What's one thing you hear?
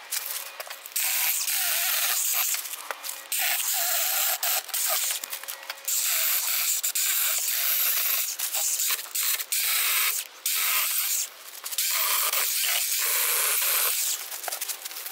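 A small cordless saw buzzes in loud bursts as it cuts through woody stems.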